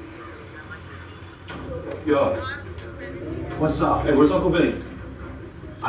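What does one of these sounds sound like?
A television plays a program through its speaker.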